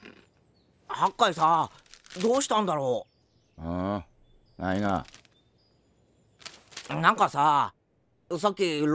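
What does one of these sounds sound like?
A man speaks in a low, drawling voice.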